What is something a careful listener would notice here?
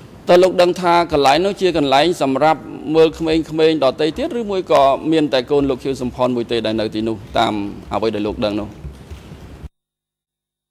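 A middle-aged man speaks steadily into a microphone in a calm, formal voice.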